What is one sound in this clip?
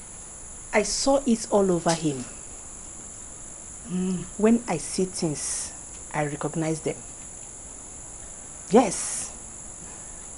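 A middle-aged woman speaks close by with animation.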